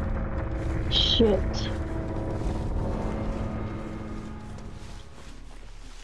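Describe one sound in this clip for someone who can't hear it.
Dry corn stalks rustle as someone pushes through them.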